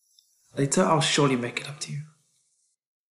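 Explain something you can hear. A young man speaks quietly and close.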